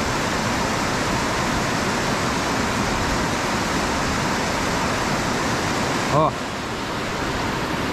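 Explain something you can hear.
River rapids rush loudly over rocks.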